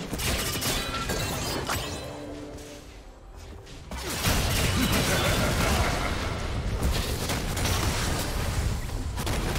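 Magic spell effects whoosh, zap and crackle in a fast fight.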